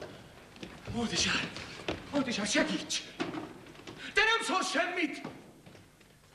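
A young man speaks with emotion.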